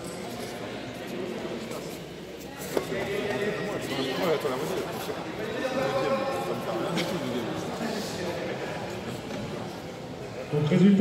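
Two judo fighters grapple and thud on a mat.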